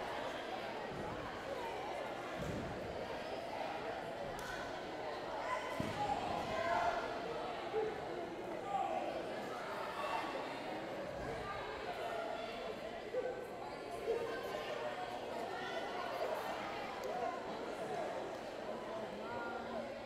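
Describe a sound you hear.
A crowd chatters and murmurs in a large echoing gym.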